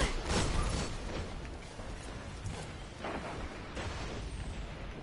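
Gunshots crack in a video game, with echoing blasts.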